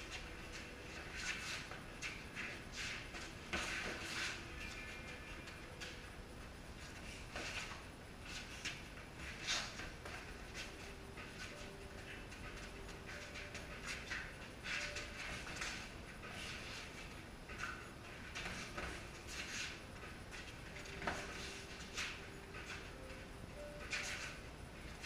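Sneakers squeak and scuff on a concrete floor.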